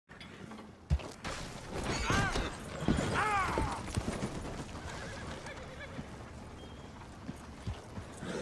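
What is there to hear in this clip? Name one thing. Wooden wagon wheels creak and rumble over a dirt track.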